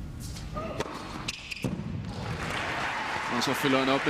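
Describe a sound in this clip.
A racket strikes a tennis ball.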